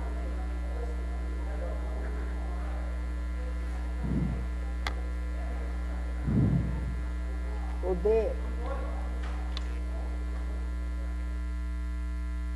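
A man speaks quietly close to a microphone.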